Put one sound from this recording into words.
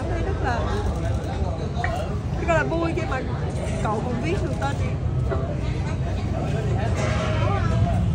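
A young woman speaks tearfully and close by.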